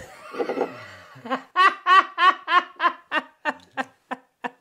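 An older man laughs loudly and heartily.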